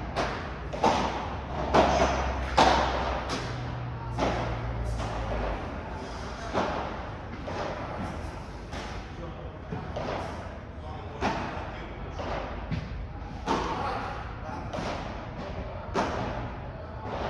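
A ball thuds on the court and bangs off glass walls.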